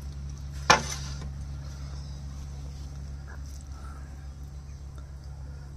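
A man eats rice with his fingers, with soft squelching sounds.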